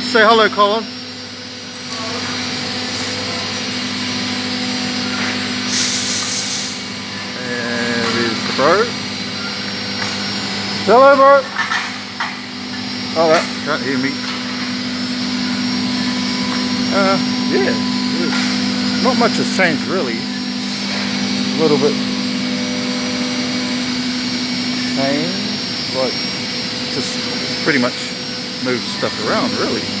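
Machines hum steadily in a large, echoing hall.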